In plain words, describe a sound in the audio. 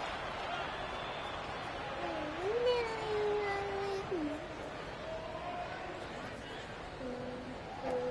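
A basketball bounces on a hardwood court.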